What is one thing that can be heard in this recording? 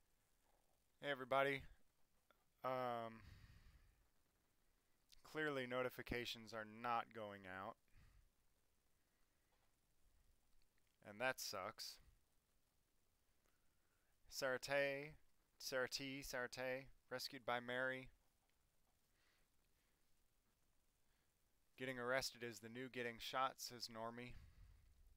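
A middle-aged man speaks calmly into a headset microphone, in short bursts with pauses.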